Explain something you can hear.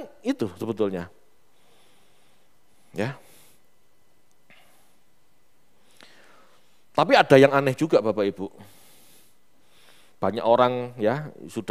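A man speaks calmly into a headset microphone, pausing between phrases.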